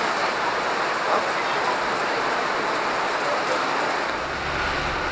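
Heavy rain pours down and patters on an awning outdoors.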